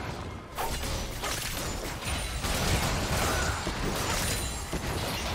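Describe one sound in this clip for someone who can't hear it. Spell effects crackle, whoosh and clash in a video game battle.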